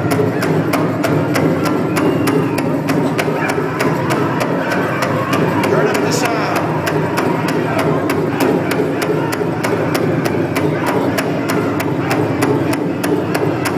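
A large drum beats in a steady, fast rhythm in a big echoing hall.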